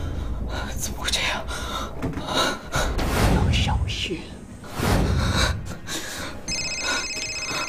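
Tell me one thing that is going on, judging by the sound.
A young woman speaks in a frightened voice.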